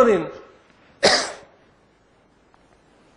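A man coughs into his hand.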